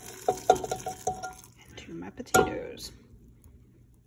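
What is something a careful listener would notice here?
A spatula scrapes and clinks against a metal pan.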